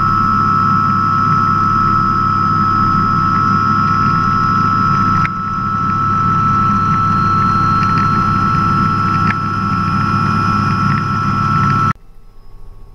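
A helicopter engine and rotor drone loudly and steadily from inside the cabin.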